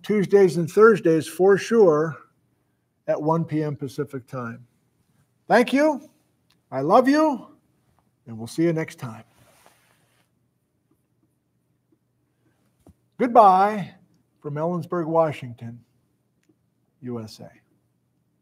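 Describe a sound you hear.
A middle-aged man talks calmly and close by, with pauses.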